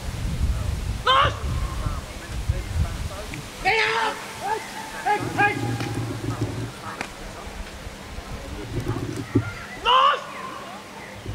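A man shouts sharp commands outdoors.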